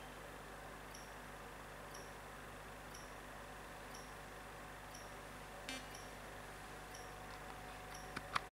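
A soft electronic tick sounds steadily, about once a second.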